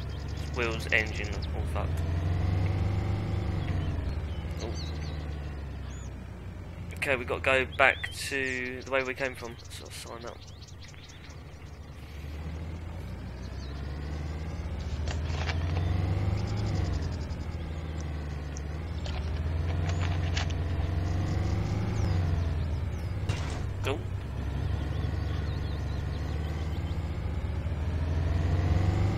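A vehicle engine hums and repeatedly revs up and down.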